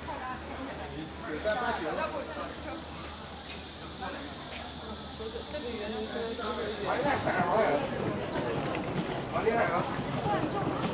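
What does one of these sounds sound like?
Several adults chat nearby in lively voices.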